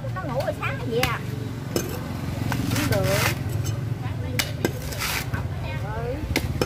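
A blade chops into coconut husk with sharp knocks.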